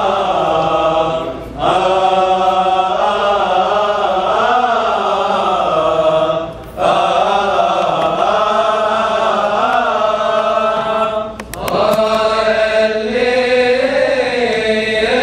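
A choir of men chants together in unison, loud and close, in an echoing hall.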